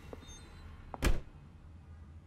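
A door slams shut with a heavy thud.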